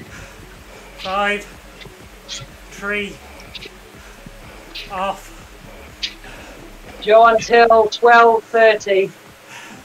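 A man speaks in short bursts through a microphone, close by.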